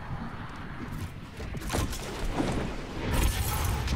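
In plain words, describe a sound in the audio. A loud whoosh rushes past.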